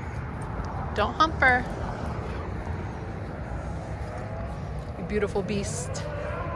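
A dog gives short high whines.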